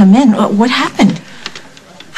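A young woman speaks tensely, close by.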